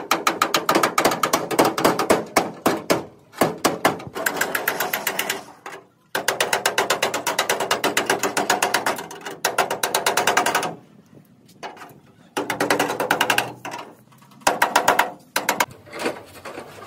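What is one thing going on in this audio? A hammer rapidly strikes a chisel against sheet metal with sharp ringing clanks.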